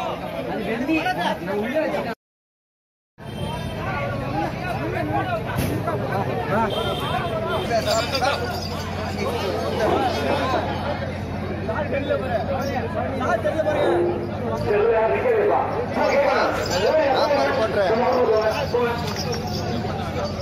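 A crowd of men talks and calls out loudly outdoors.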